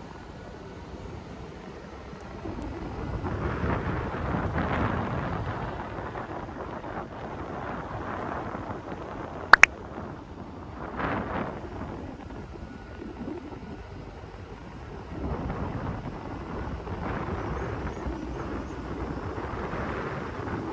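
A vehicle drives along a winding road, its engine and tyres rumbling steadily.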